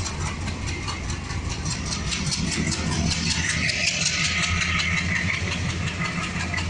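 A train engine rumbles steadily nearby.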